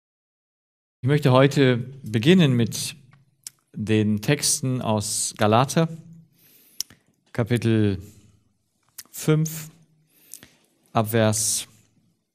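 A man speaks calmly through a clip-on microphone, reading out.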